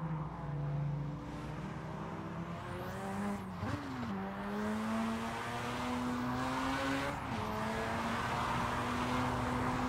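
A car engine revs hard, rising in pitch and dropping briefly at each gear change.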